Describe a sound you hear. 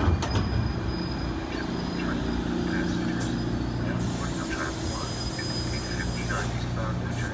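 A passenger train rumbles slowly along the track with a low, steady hum.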